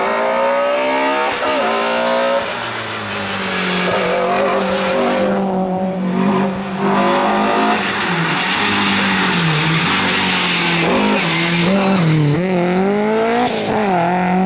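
A rally car engine roars loudly, revving up and down between gear changes.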